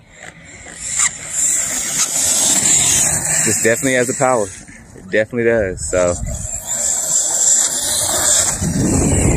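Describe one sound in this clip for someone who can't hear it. A small electric motor whines at high pitch as a toy car speeds over grass.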